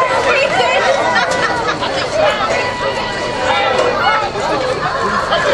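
A crowd of spectators shouts and cheers outdoors nearby.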